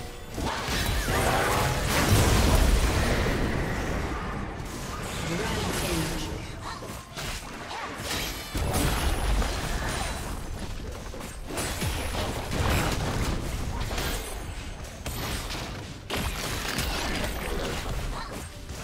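Sword and weapon hits clang repeatedly.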